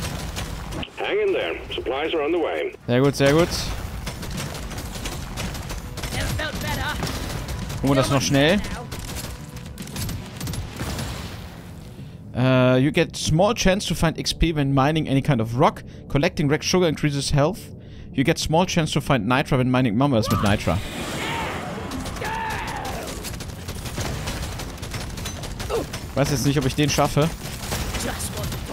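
Game weapons fire with electronic blasts and crackles.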